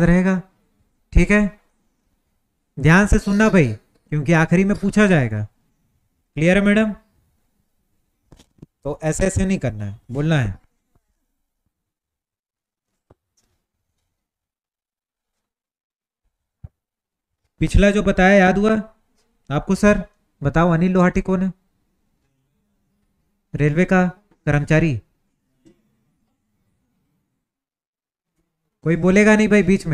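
A young man speaks calmly close to a microphone, with long pauses between phrases.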